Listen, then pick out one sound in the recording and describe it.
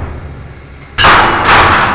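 Metal grinds and bursts with a harsh rasping burst.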